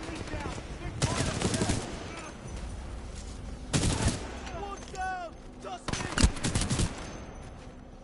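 Gunfire crackles in short loud bursts.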